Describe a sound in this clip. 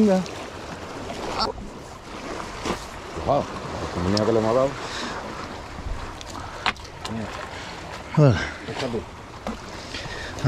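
Waves splash against rocks close by.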